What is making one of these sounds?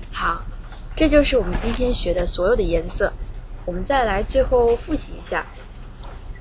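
A young woman talks close by in a cheerful voice.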